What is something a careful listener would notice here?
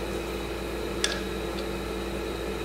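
A metal engine part clicks as a hand handles it.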